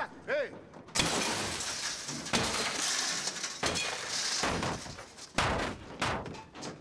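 Car window glass shatters under blows from a bat.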